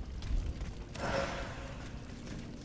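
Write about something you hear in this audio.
Rushing water churns nearby.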